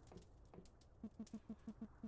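Soft footsteps patter on a wooden floor.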